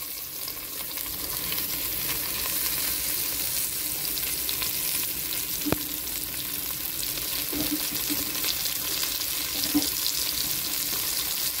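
Vegetables sizzle and hiss in a hot pot.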